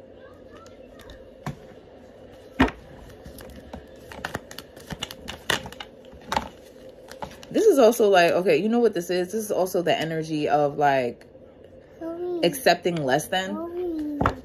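Paper cards shuffle and flick in a hand.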